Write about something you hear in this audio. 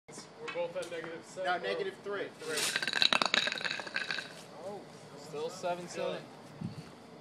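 Young men talk and call out with animation nearby, outdoors.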